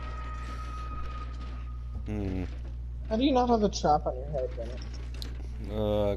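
Hands rummage through a chest.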